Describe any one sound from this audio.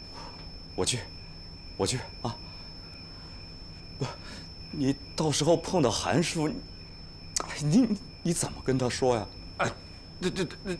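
A middle-aged man speaks pleadingly, close by.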